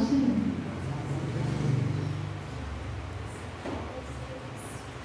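A young woman speaks quietly through a microphone.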